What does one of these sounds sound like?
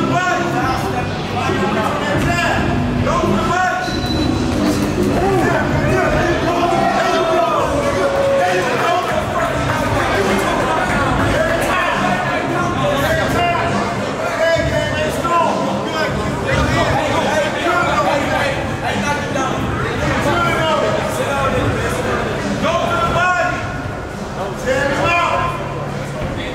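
A crowd of spectators chatters and shouts.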